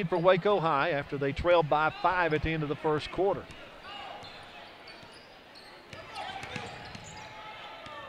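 A basketball bounces on a wooden court.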